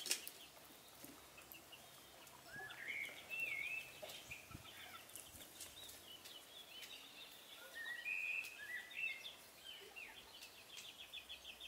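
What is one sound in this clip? Hands sprinkle shredded meat onto sauced pizza dough.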